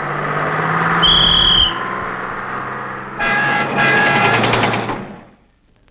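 A bus horn honks.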